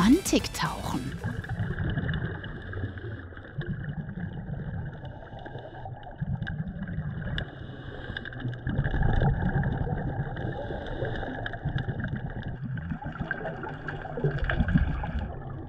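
Air bubbles gurgle from a diver's breathing regulator.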